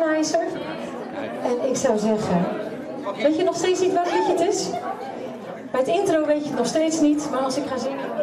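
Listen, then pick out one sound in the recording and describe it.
A second woman speaks into a microphone, heard through loudspeakers.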